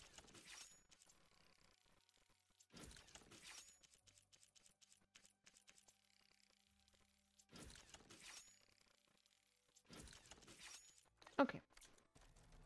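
Soft whooshing menu sounds play as items are switched.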